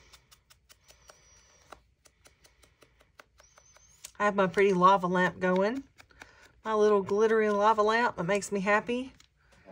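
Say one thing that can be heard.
An ink dauber taps softly on paper.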